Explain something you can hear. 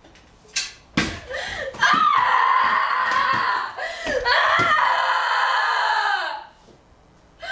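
A young woman screams loudly and frantically nearby.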